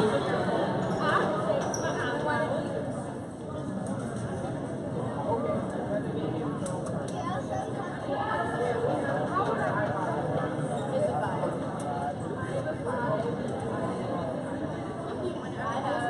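A crowd of spectators chatters throughout a large echoing gym.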